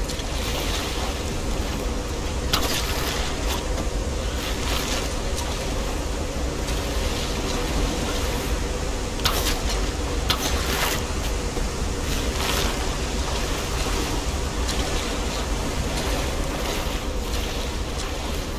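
A swimmer splashes through the water.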